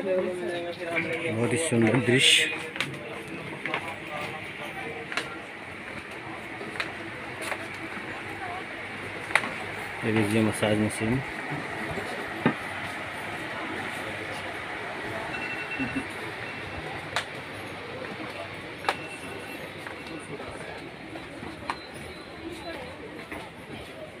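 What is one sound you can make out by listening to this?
A busy crowd murmurs and chatters nearby.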